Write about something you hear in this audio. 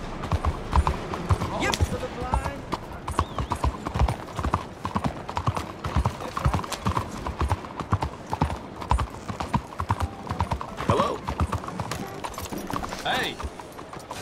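Horse hooves clop steadily on cobblestones.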